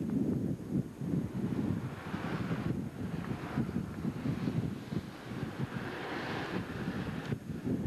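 Floodwater flows and ripples outdoors.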